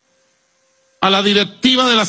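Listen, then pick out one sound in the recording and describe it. A man speaks forcefully through a microphone and loudspeakers.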